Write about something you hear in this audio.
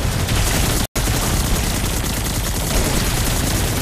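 Explosions burst with a heavy rumble.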